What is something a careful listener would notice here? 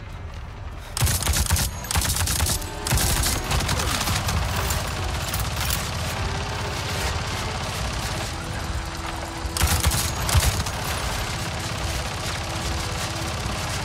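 A rifle fires in loud, rapid bursts.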